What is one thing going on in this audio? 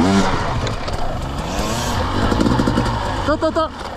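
Other dirt bike engines rev nearby.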